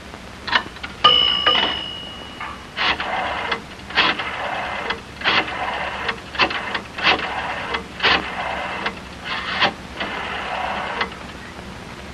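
A rotary telephone dial whirs and clicks as a number is dialled.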